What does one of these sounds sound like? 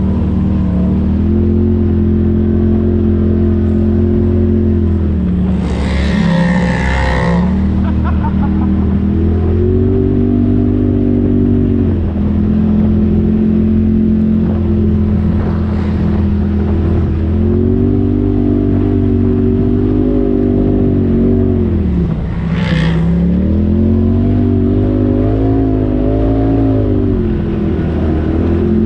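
An engine drones steadily close by, rising and falling in pitch as it revs.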